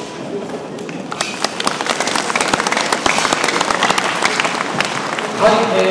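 A group of children claps their hands rapidly.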